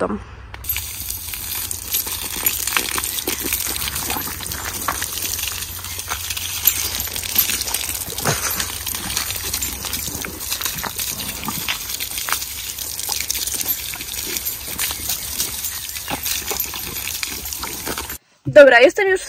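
Water from a hose splashes and hisses steadily onto pavement.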